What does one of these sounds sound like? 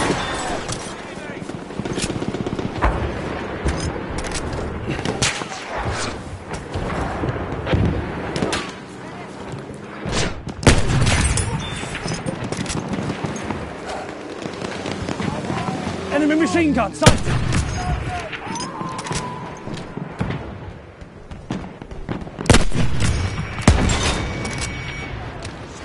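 Distant gunfire and explosions rumble on all around.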